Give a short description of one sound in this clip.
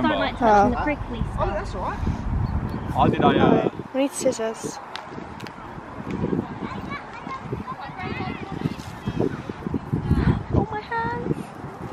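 A young girl talks excitedly nearby.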